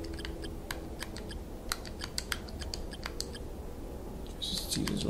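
Short electronic menu blips tick in quick bursts.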